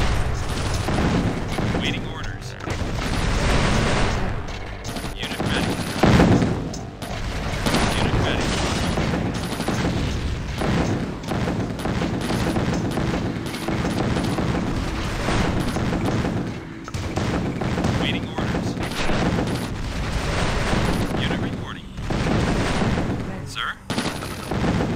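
Rapid gunfire crackles in a battle.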